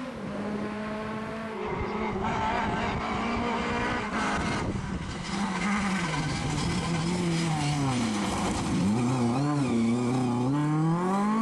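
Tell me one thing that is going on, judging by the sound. Gravel sprays and crunches under a car's tyres.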